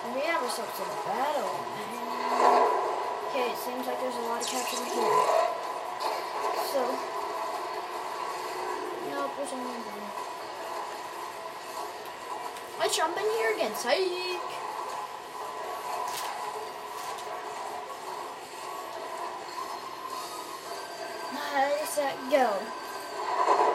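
Cartoonish game blasts and splats pop out from a speaker in quick bursts.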